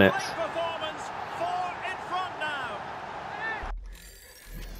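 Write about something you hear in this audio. A stadium crowd cheers loudly.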